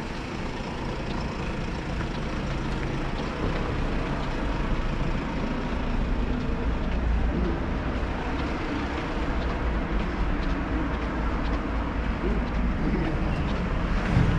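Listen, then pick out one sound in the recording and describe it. Footsteps tap on a paved street outdoors.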